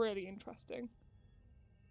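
A young woman speaks briefly into a close microphone.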